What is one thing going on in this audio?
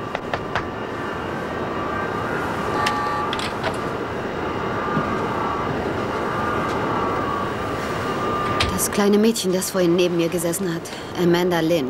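A steady engine drone hums.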